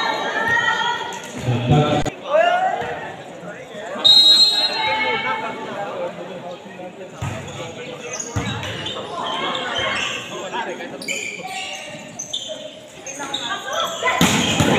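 A crowd of young people cheers and shouts in a large echoing hall.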